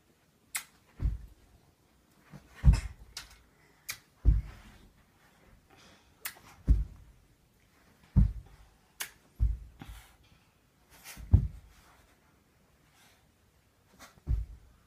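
Children's feet thump on a carpeted floor.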